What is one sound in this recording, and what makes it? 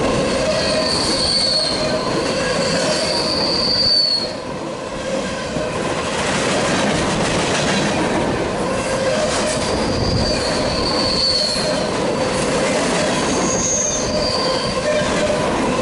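Metal wheels squeal high and shrill against the rails.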